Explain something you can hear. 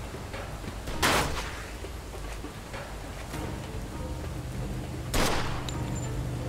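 A pistol fires a sharp shot.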